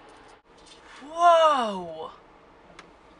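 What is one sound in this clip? A young woman exclaims with a rising, drawn-out voice.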